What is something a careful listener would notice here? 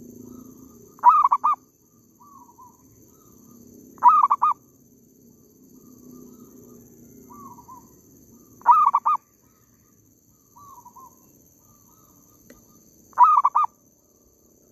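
A bird calls close by in short, loud bursts that repeat every few seconds.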